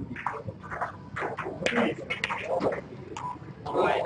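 A cue tip strikes a ball with a sharp click.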